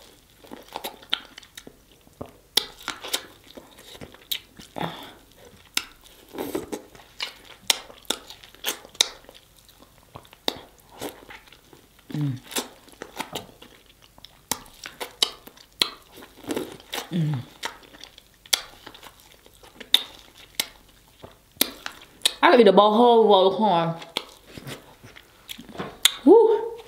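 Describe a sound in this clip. A young woman chews and smacks loudly close to a microphone.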